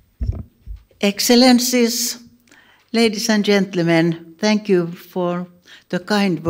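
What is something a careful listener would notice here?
An elderly woman speaks with animation into a microphone.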